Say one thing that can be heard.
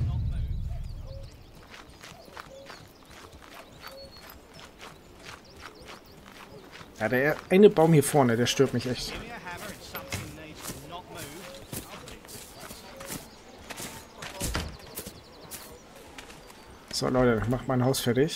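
Footsteps swish through tall grass at a steady pace.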